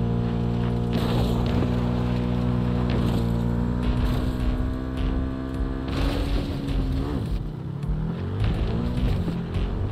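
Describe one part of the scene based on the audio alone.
Junk rattles and clatters under motorcycle tyres.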